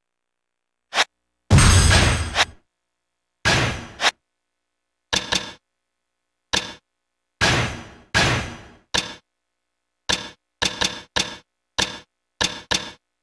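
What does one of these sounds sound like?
Short electronic menu chimes sound repeatedly.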